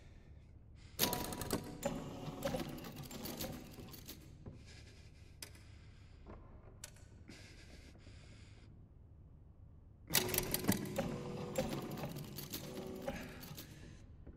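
Metal discs grind and click as they turn.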